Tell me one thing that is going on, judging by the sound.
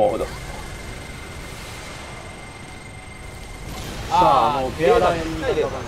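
A plasma cannon fires with a rushing energy blast.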